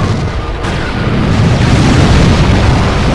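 A second explosion bursts loudly.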